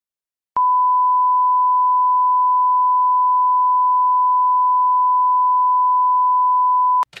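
A steady, high-pitched test tone beeps without a break.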